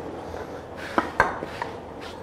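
A small bowl knocks down onto a cutting board.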